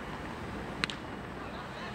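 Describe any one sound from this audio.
A baseball smacks into a catcher's leather mitt.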